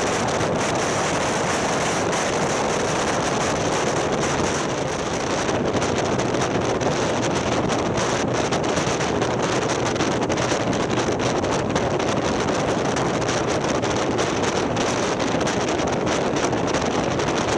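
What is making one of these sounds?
Wind rushes loudly over a microphone on a moving motorcycle.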